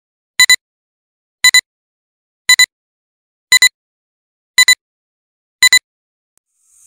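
A countdown beeps once each second, six short high beeps.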